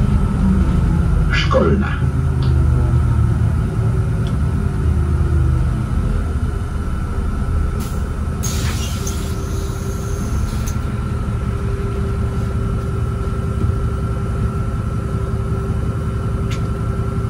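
A diesel city bus engine hums and rumbles, heard from inside the bus.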